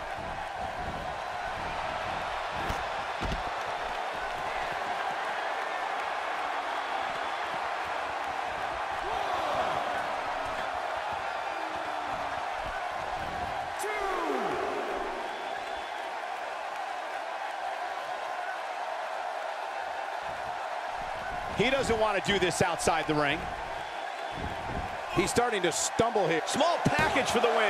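A large crowd cheers steadily in an echoing arena.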